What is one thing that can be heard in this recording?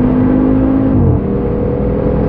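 A gear change briefly interrupts the engine note.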